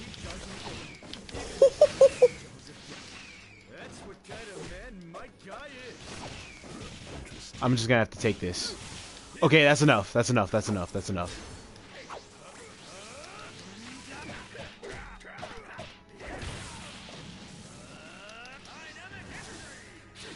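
Blows land with sharp thuds in a fast fight.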